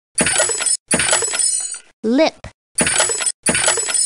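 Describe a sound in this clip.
A wooden crate smashes apart with a cartoon crash.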